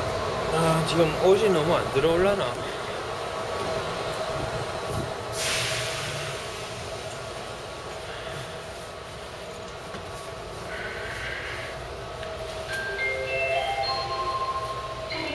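A subway train rumbles and hums steadily.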